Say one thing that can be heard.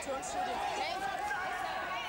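A young woman shouts angrily close by.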